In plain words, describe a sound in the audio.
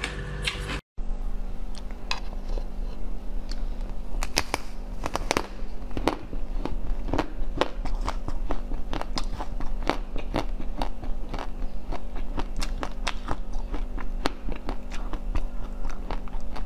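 A young woman bites into frozen ice with sharp cracks, close to a microphone.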